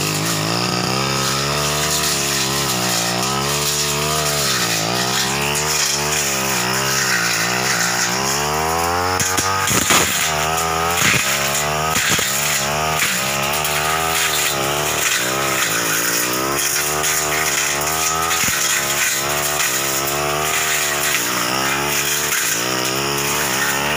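A brush cutter engine whines loudly and steadily, rising and falling in pitch.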